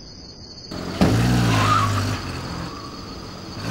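A car engine revs loudly as a car pulls away.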